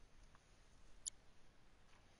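A short menu click sounds.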